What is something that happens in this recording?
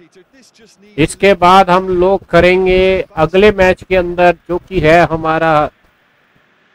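A man talks loudly and with animation close to a microphone.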